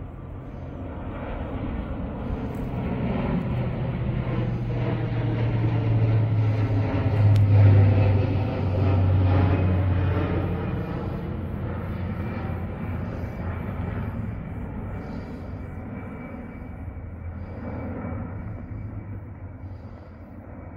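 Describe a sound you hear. A propeller plane drones overhead, growing louder as it passes and then fading away.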